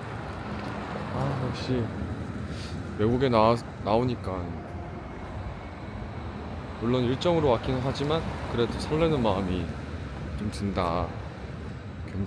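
A young man speaks softly and calmly close to the microphone.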